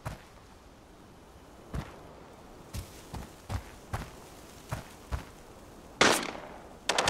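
Footsteps thud on the ground at a steady walking pace.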